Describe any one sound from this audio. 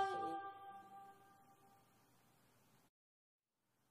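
An acoustic guitar chord rings out and slowly fades.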